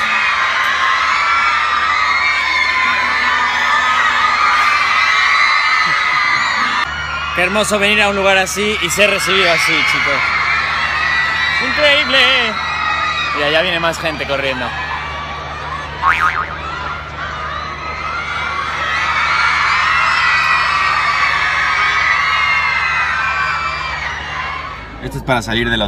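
A crowd of young fans screams and cheers below, heard from high up outdoors.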